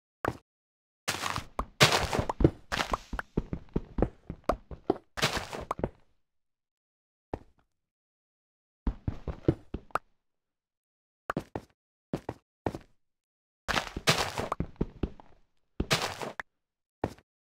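Blocks crunch and thud as they are dug out in quick bursts.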